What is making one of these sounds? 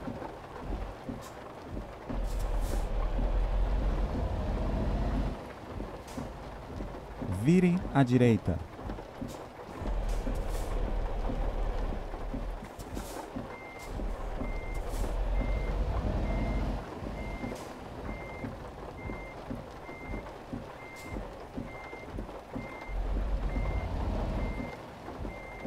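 A truck engine rumbles steadily, rising and falling in bursts.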